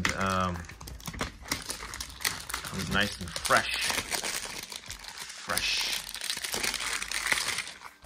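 Plastic wrap crinkles as it is handled.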